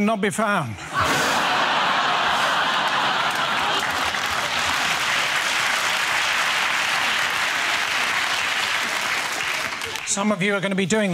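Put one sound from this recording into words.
An audience laughs and applauds loudly in a large hall.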